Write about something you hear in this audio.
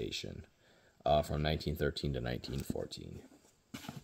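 A hardcover book is shut with a soft thump.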